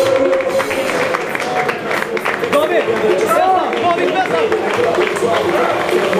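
A crowd of men talks and cheers loudly nearby.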